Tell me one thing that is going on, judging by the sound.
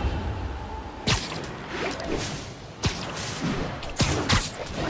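Webs shoot out with sharp, whooshing snaps every second or so.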